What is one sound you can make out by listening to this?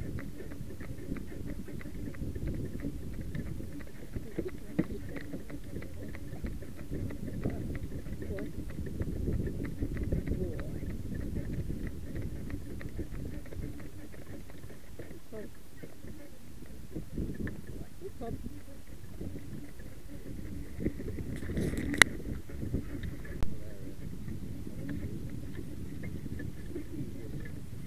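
A horse's hooves clop steadily on a road.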